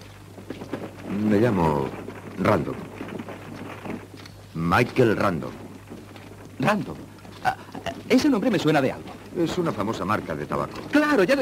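A man speaks in a low, calm voice, close by.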